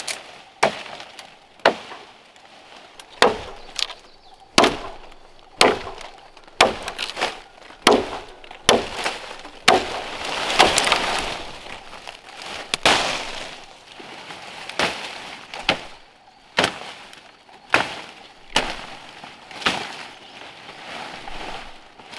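A machete chops into wood with sharp, regular blows.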